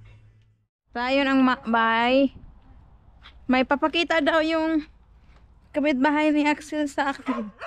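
A young woman speaks with animation, close to the microphone.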